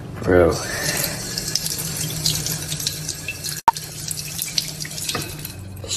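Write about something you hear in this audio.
Water runs from a tap and splashes onto a plate.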